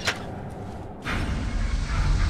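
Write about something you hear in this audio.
A metal lever clanks as it is pulled.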